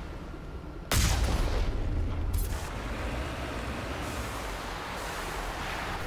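A heavy vehicle splashes through shallow water.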